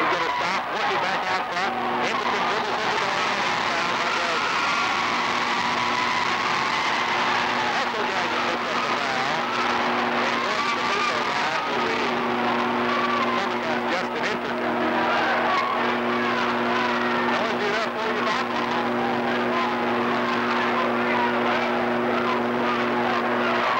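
Basketball shoes squeak sharply on a wooden floor.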